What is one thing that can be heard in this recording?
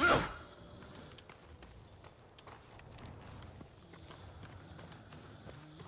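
Footsteps tread softly on grass and dirt.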